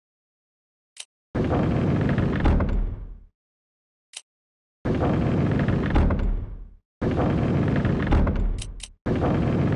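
A short menu blip sounds.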